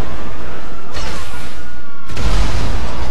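A rocket launcher fires with a loud blast.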